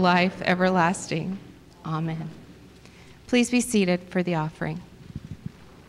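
A woman speaks calmly through a microphone in a large echoing room.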